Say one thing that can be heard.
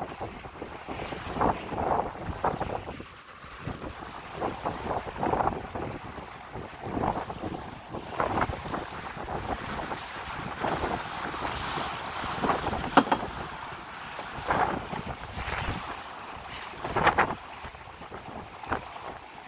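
Waves slap and splash against a sailing boat's hull.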